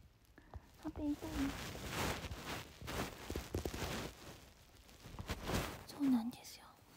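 Fabric rustles against a blanket close by.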